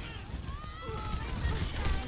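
Twin automatic guns fire in a video game.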